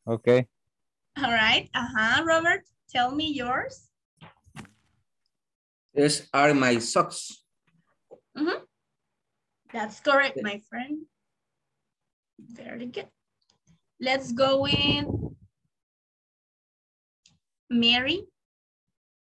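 A woman speaks over an online call, explaining calmly.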